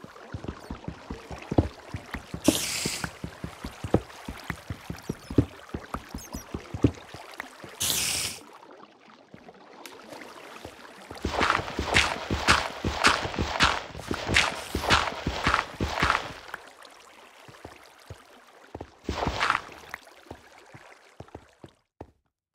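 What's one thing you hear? A pickaxe chips rapidly at stone blocks in a game.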